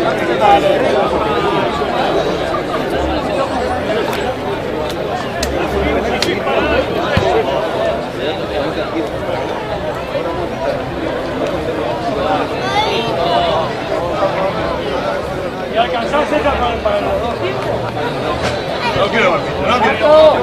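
A crowd of spectators chatters and cheers nearby outdoors.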